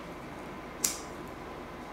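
A lighter clicks as it is struck.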